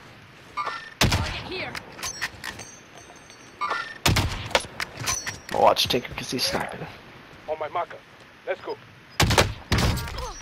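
A sniper rifle fires with loud, sharp cracks.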